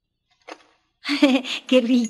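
A young boy speaks softly close by.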